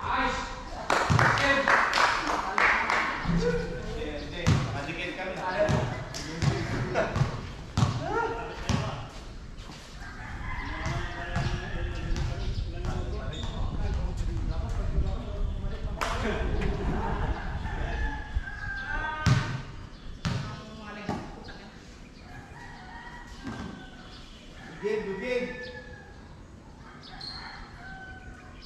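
Young people shout and call out across an open court.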